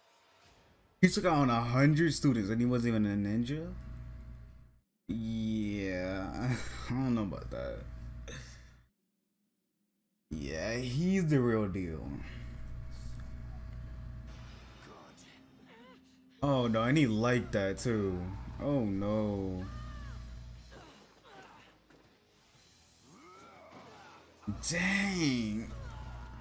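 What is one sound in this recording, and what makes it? A young man talks with animation close to a microphone, in bursts with pauses.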